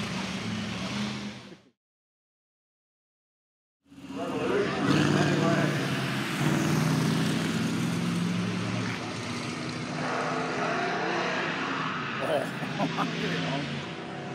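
A racing car engine roars loudly as cars drive past one after another.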